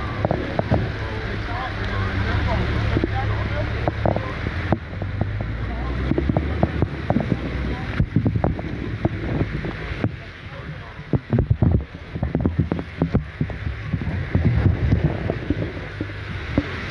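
Heavy rain lashes down and patters against glass.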